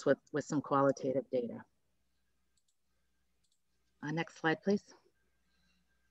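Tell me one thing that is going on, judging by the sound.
A woman speaks calmly through a microphone in an online call.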